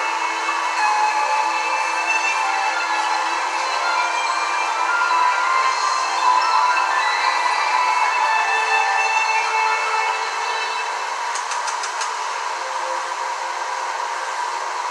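Warbling, distorted music plays from a television loudspeaker and turns quieter near the end.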